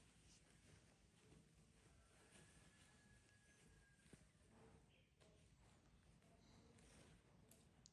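A paper diaper crinkles.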